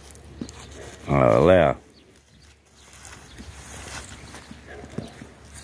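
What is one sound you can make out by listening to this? Goats tear and chew grass.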